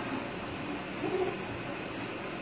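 A baby grunts with effort.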